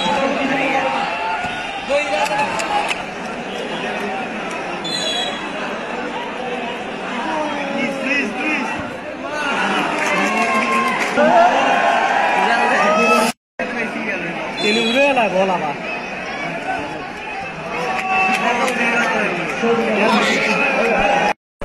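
A large crowd shouts and cheers outdoors.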